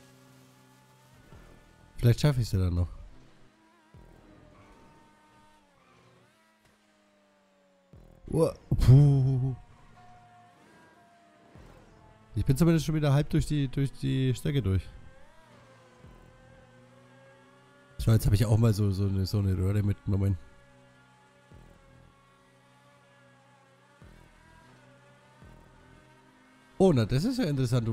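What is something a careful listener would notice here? A race car engine hums steadily at high speed.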